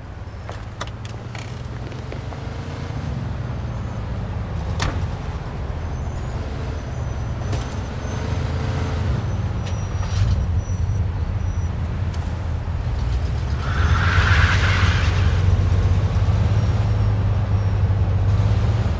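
A car engine starts and idles with a low hum.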